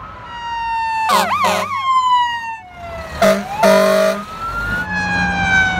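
A fire truck's horn blares in short blasts.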